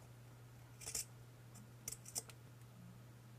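Scissors snip through thin material close by.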